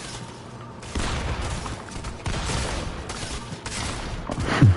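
A shotgun fires several loud blasts at close range.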